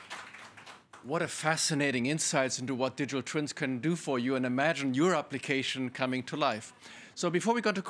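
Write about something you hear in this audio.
A man speaks calmly into a microphone in a room.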